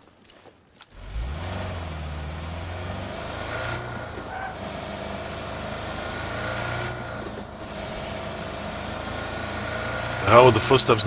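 A car engine starts and revs steadily as the car drives off.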